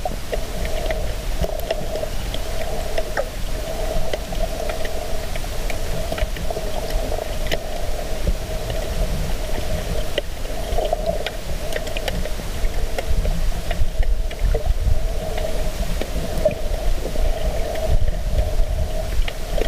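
Water rumbles steadily in a muffled underwater hush.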